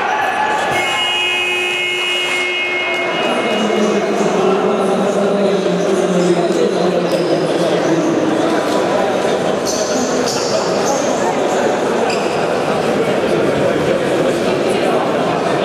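Men shout and call out to each other across an echoing hall.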